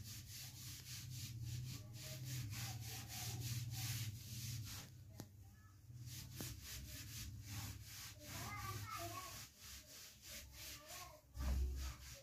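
A hand rubs back and forth across a wooden door in quick, even strokes.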